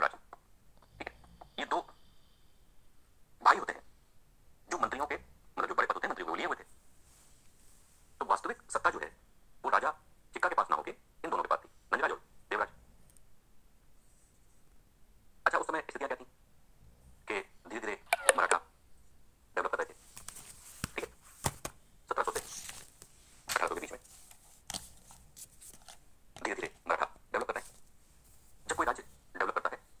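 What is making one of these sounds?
A man lectures with animation, heard through a small phone speaker.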